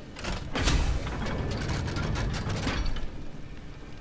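A heavy metal cage rumbles and clanks shut.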